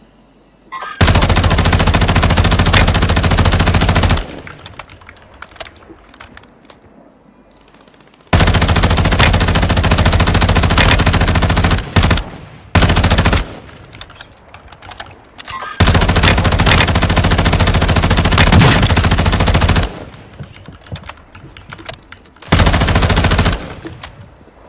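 A rifle fires in long rapid bursts.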